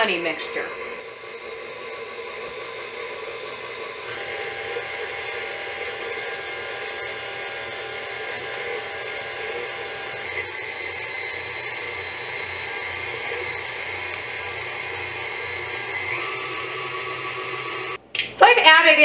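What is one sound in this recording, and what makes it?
A stand mixer whirs steadily.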